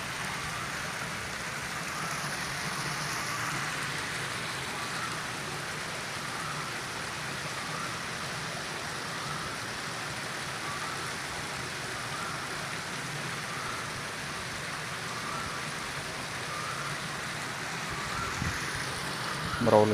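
Water trickles steadily down a small cascade of rocks.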